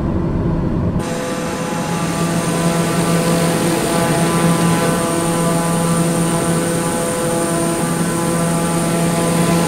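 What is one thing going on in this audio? A turboprop engine roars and whines steadily outside in open air.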